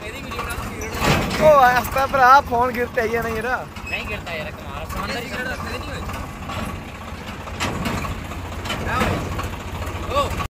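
A vehicle engine rumbles steadily at low revs.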